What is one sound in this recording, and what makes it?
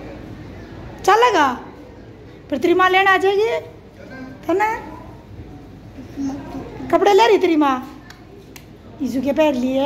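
A young child talks in a high voice close by, in short bursts.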